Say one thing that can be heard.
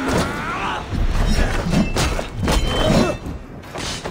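Metal blades clash and strike against a wooden shield.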